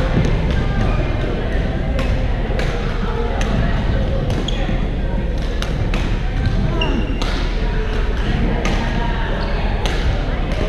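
Shuttlecocks are struck with rackets in sharp taps, again and again.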